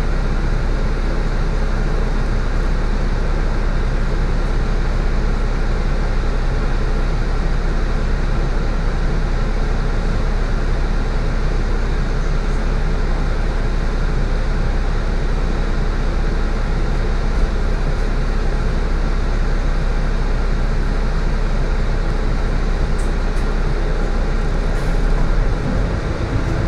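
A bus engine idles steadily with a low hum.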